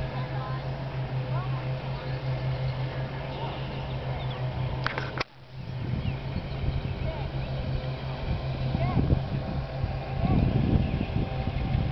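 A horse canters with soft hoofbeats thudding on grass.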